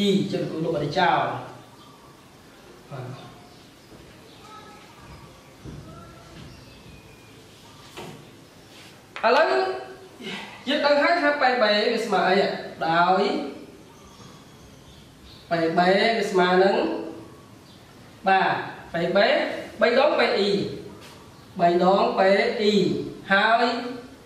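A man speaks clearly and steadily, as if teaching, close by.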